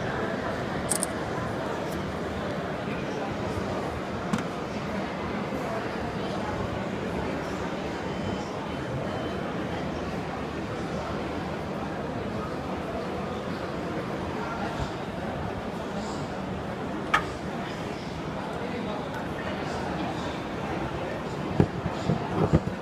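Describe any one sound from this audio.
Fingers handle a small metal part with soft clicks and taps.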